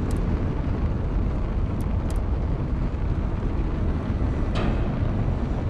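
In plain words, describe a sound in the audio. A spaceship's engines rumble with a deep, steady roar.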